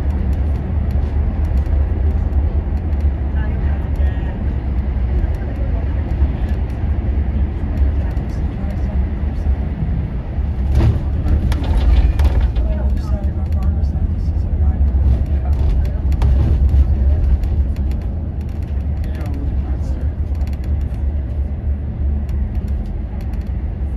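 Traffic hums along a busy road.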